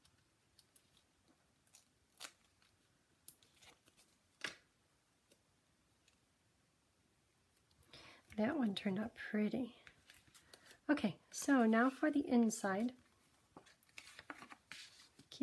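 Paper rustles and crinkles softly as it is handled.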